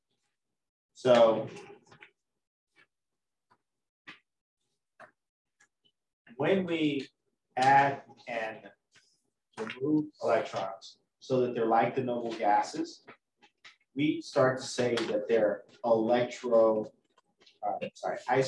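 A man lectures calmly through a microphone, with pauses.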